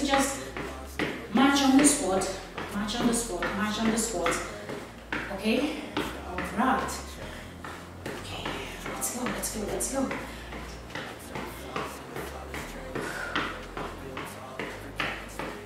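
Springy boots thump and bounce on a hard floor.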